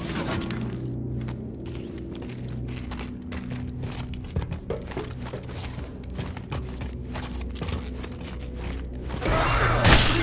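Heavy boots clank on a hard floor.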